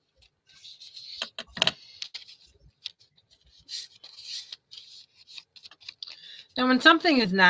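Paper crinkles and rustles as hands handle it close by.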